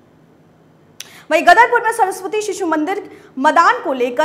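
A woman reads out clearly and firmly through a microphone.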